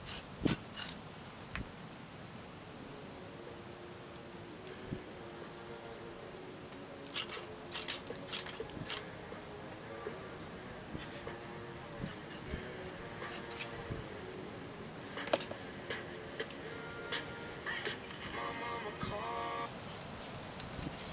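A knife scrapes and shaves a wooden stick.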